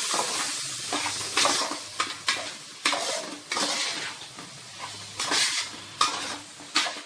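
Food squelches and scrapes as it is mixed by hand in a metal pot.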